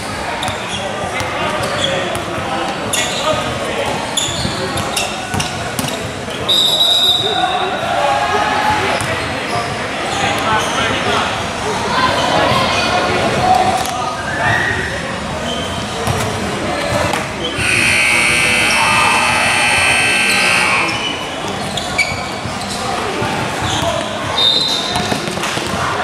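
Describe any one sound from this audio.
A basketball bounces on a court floor in a large echoing hall.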